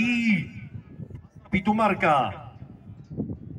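A man speaks loudly and with animation over a loudspeaker outdoors.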